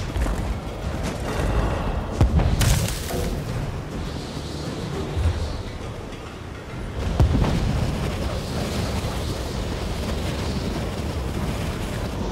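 Magic spells crackle and burst in combat.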